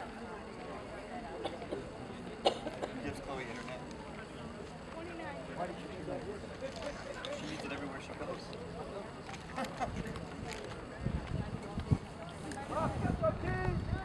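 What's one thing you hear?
Young men shout to each other from a distance across an open field.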